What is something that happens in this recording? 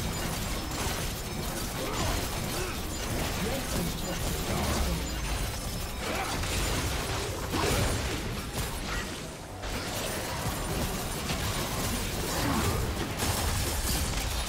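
Magic blasts and impacts crackle and boom in a fast-paced fight.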